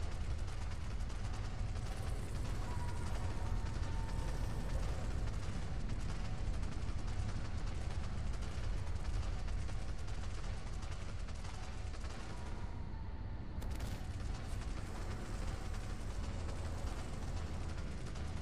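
Lava rumbles low and steady.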